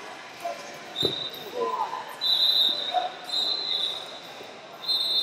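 Wrestling shoes squeak sharply on a mat.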